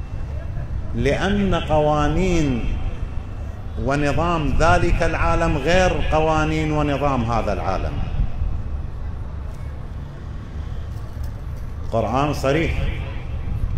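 An elderly man chants in a melodic, drawn-out voice through a microphone, in an echoing hall.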